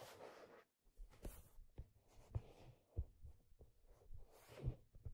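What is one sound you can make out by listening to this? Fingers tap lightly on leather, very close.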